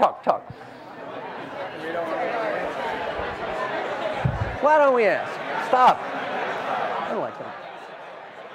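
An elderly man speaks with animation to an audience, heard through a microphone.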